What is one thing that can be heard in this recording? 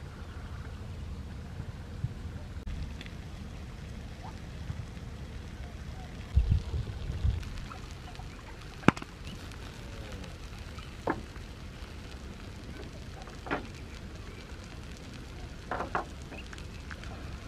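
A charcoal fire crackles under a grill.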